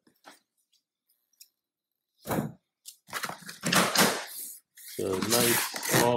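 Cardboard flaps scrape and rustle as a box is opened.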